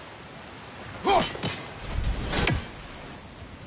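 A man grunts with effort.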